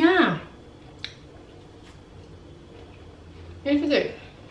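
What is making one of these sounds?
A woman chews a crunchy snack.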